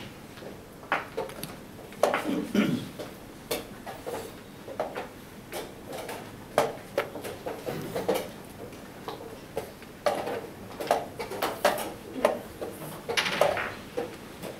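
Wooden chess pieces clack down on a board.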